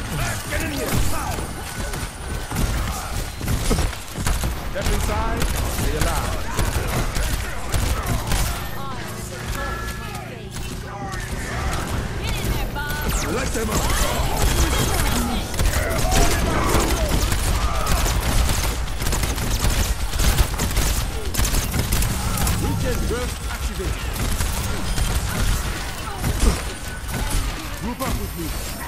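Energy blasts crackle and zap.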